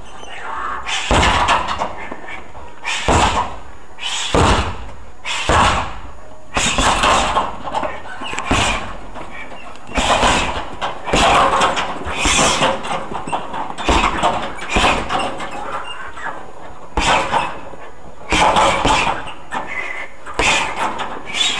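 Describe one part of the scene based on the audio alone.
Gloved punches and kicks thud against a heavy punching bag in an echoing hall.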